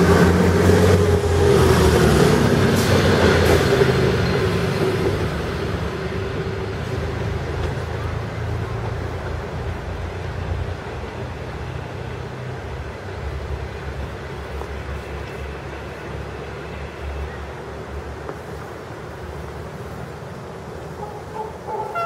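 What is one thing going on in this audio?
A diesel train engine rumbles as the train pulls away and slowly fades into the distance.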